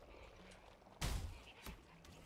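An arrow strikes a target with a sharp thud.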